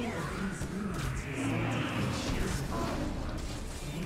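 Monsters growl and weapons strike in a fight.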